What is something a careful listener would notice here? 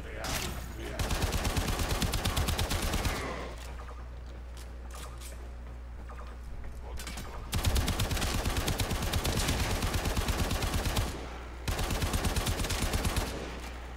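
Rapid gunfire rattles in long bursts.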